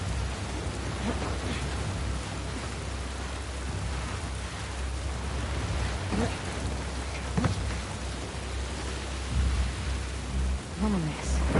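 A person climbs over a ledge with scraping and thumping.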